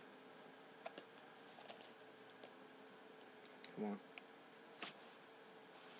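A plastic case clicks and taps as it is handled close by.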